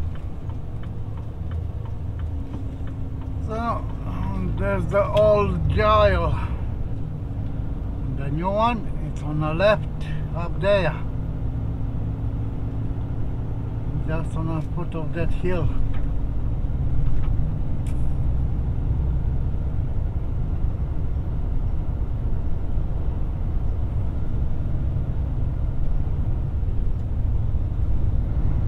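Tyres roll on asphalt with a low rumble.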